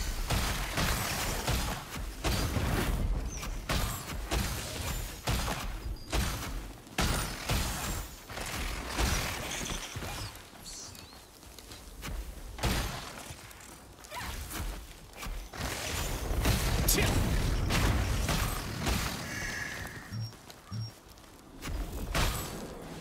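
Blades slash and strike again and again.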